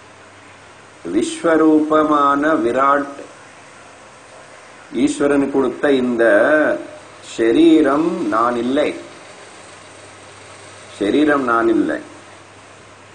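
An elderly man speaks calmly and deliberately into a close microphone, with pauses.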